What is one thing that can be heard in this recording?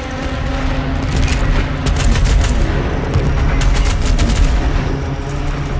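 A heavy gun fires rapid bursts.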